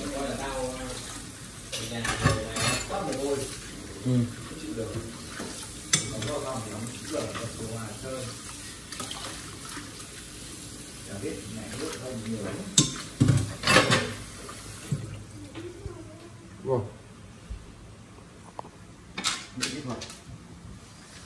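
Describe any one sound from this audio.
Dishes and pans clatter in a sink.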